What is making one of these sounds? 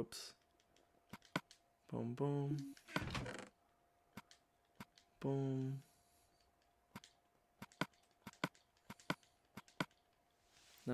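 A game menu gives short soft clicks as items are moved.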